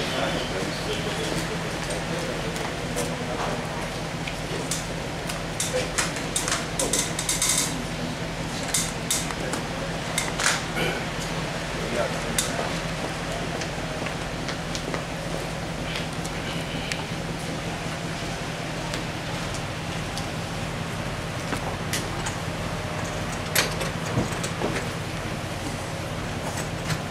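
Several people murmur quietly nearby.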